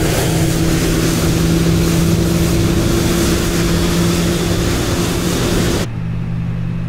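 A jet airliner hums on the ground outside.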